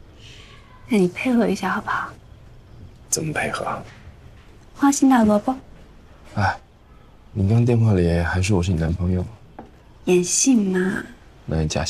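A young woman speaks quietly up close.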